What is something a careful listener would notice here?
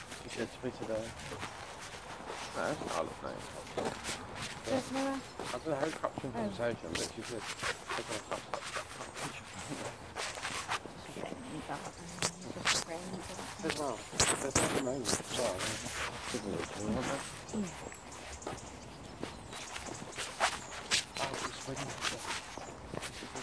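Footsteps tap on a wet paved path.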